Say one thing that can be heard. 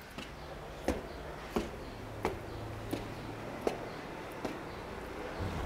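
Footsteps climb wooden stairs.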